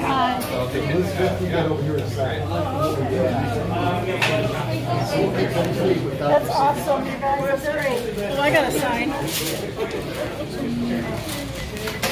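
A woman talks nearby in a lively voice.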